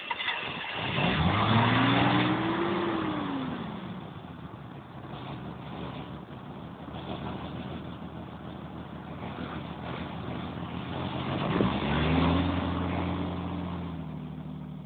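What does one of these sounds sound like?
An engine revs up and then winds down.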